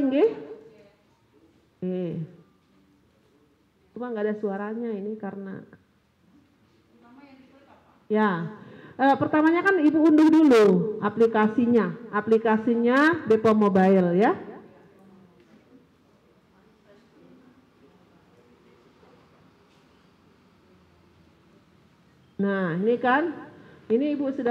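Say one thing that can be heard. A woman speaks calmly into a microphone, heard through a loudspeaker in an echoing room.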